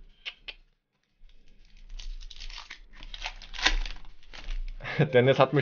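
A plastic card wrapper crinkles and rustles in hands.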